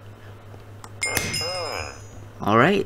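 A bright game chime rings out briefly.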